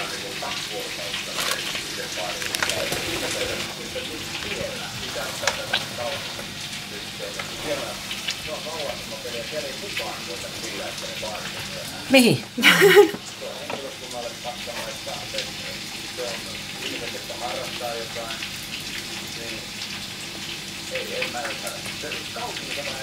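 A plastic scraper scrapes softly against a baking tray.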